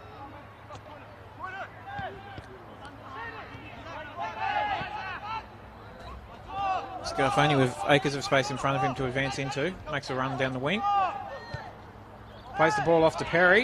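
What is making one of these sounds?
Young men shout and call to each other outdoors across an open field.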